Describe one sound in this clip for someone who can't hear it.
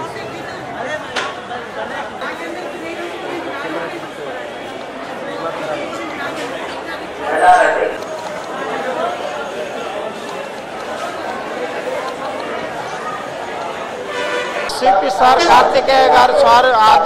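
A crowd of men and women chatters in the background.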